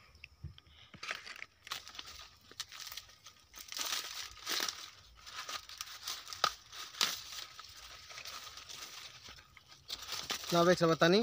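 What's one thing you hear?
Dry corn husks rustle and crackle.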